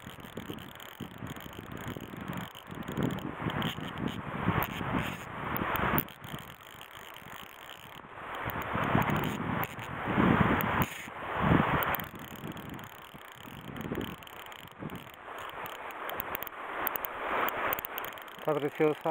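A river flows and ripples close by.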